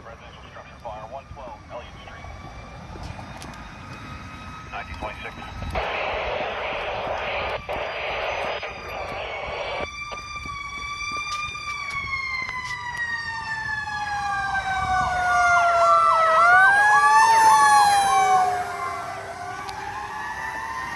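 A fire truck siren wails, growing louder as the truck approaches and passes, then fading.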